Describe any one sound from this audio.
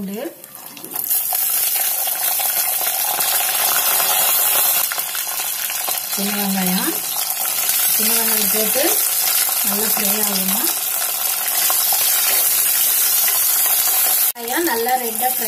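Hot oil sizzles and crackles loudly.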